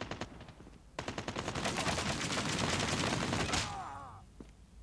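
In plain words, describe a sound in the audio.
A machine gun fires rapid bursts of shots.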